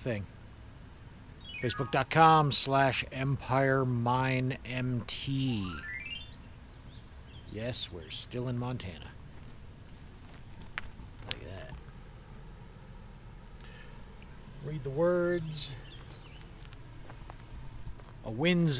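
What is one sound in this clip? A middle-aged man talks with animation close to the microphone, outdoors.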